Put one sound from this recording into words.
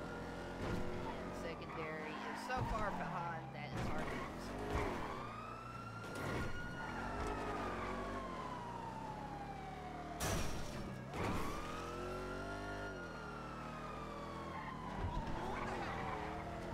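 A car engine revs hard, rising and falling in pitch through gear changes.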